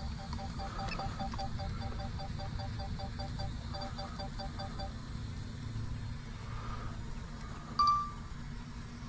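A remote controller beeps in quick repeated chirps.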